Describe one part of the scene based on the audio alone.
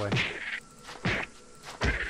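A sword strikes a creature with a dull thunk.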